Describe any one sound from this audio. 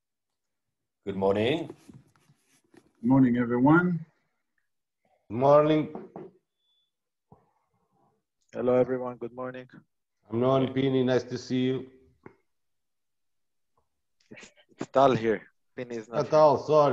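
A man speaks calmly over an online call, in bursts with pauses.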